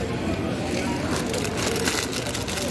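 Plastic snack packets crinkle close by as they are handled.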